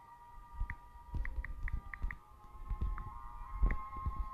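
Keyboard keys tap and click quickly.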